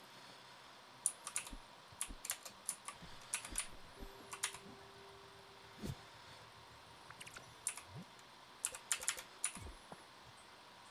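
Short, bright game sound effects click and chime in quick bursts.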